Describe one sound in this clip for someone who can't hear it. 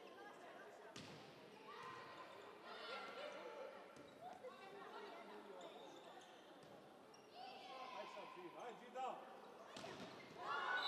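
A volleyball is struck with sharp smacks that echo in a large hall.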